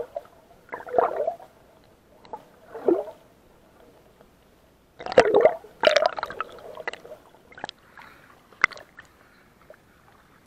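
Water splashes and sloshes close by in bursts.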